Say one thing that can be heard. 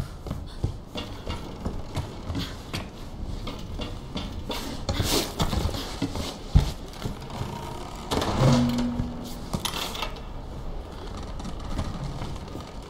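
Footsteps thud on wooden and metal planks.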